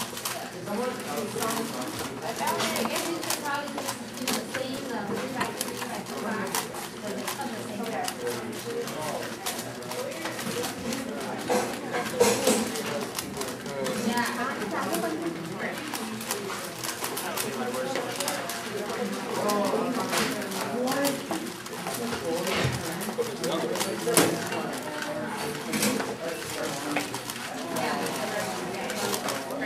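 A puzzle cube clicks and rattles rapidly as its layers are turned.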